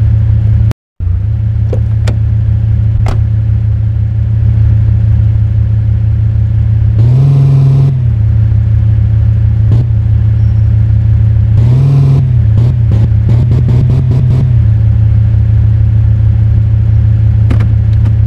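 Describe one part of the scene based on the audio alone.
A car engine hums steadily and revs up now and then.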